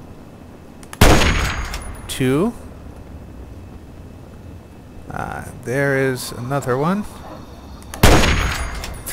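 A rifle fires a loud, echoing shot.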